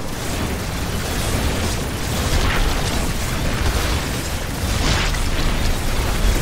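Sci-fi weapons fire and blasts boom in a busy battle.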